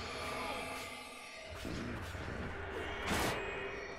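A magic spell crackles and whooshes.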